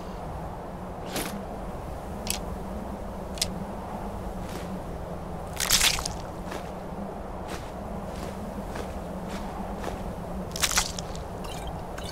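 A game menu clicks softly as items are browsed.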